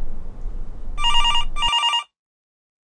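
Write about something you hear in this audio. A telephone rings.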